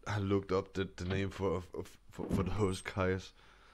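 A wooden door creaks open slowly.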